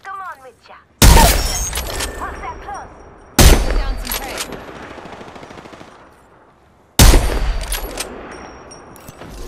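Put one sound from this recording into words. A rifle fires loud single shots that ring out and slowly fade.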